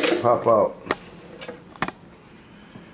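A circuit board clicks and knocks as it is handled.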